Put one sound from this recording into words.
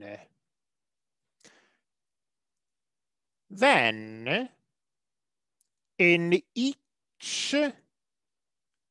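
A man speaks calmly and slowly, close to a microphone.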